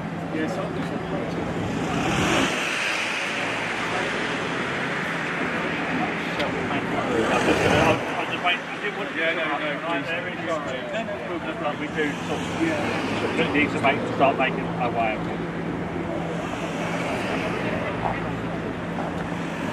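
A crowd of men and women chat quietly outdoors nearby.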